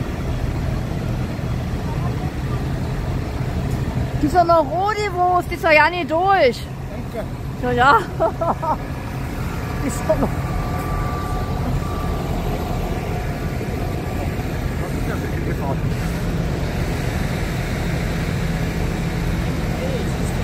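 Tractor engines rumble steadily nearby.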